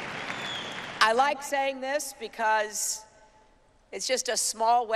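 A middle-aged woman speaks firmly into a microphone over loudspeakers.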